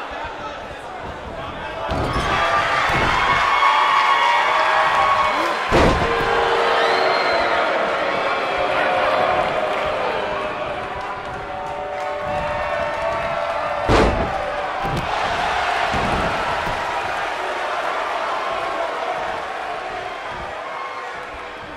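A large crowd cheers loudly throughout.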